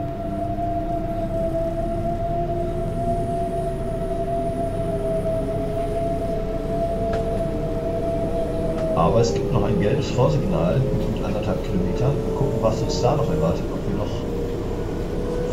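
Train wheels rumble steadily over the rails.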